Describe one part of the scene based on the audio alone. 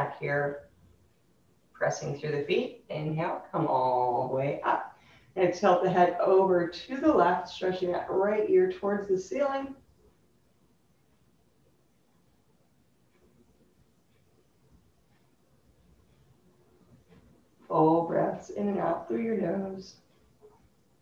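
A woman speaks calmly and clearly, giving instructions close by.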